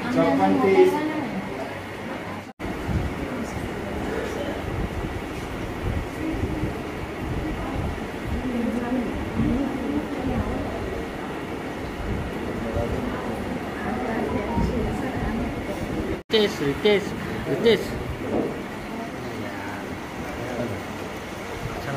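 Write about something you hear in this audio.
Men and women chat in a low murmur nearby.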